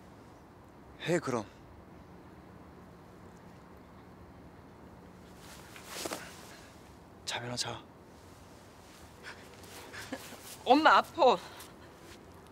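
A young man speaks in short, urgent bursts nearby.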